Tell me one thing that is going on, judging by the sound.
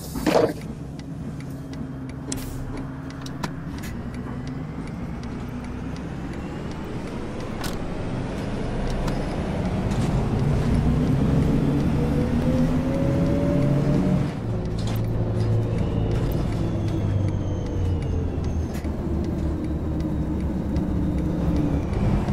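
A bus engine hums and rises in pitch as the bus speeds up.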